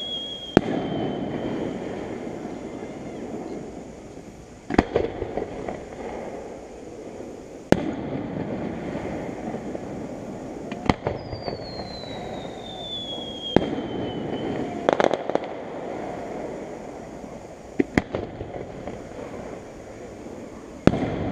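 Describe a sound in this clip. Fireworks burst with loud booms that echo far off.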